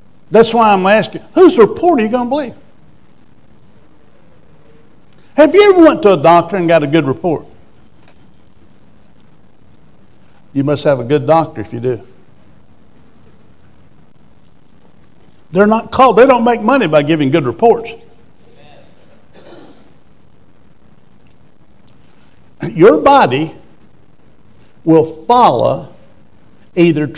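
An older man speaks calmly into a microphone, in bursts with long pauses.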